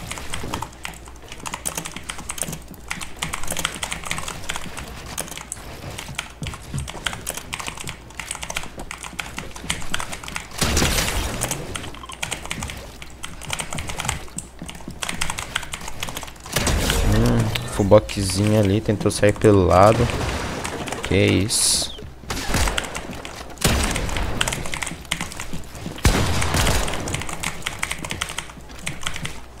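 Quick clacks and thuds of building pieces snap into place in a video game.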